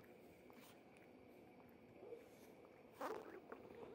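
A cat licks its paw with soft wet clicks.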